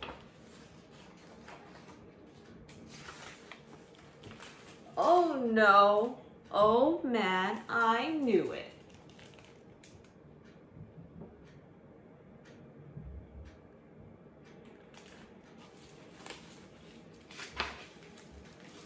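Stiff book pages rustle and flap as they turn.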